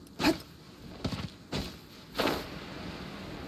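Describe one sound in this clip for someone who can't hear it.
A glider unfolds with a flapping snap.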